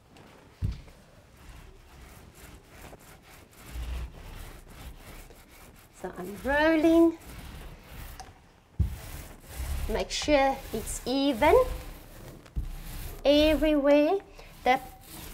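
A paint roller rolls softly over a wall.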